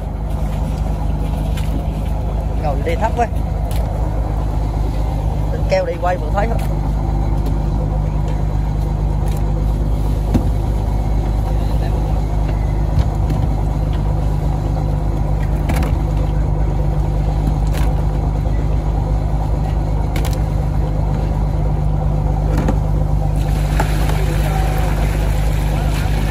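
A boat engine drones steadily throughout.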